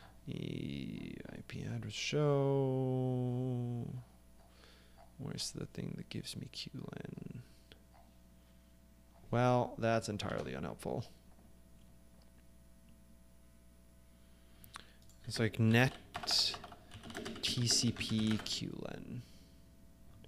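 A man speaks casually into a microphone, in bursts with pauses.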